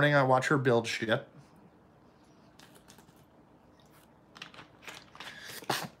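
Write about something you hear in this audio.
A man gulps a drink from a plastic bottle.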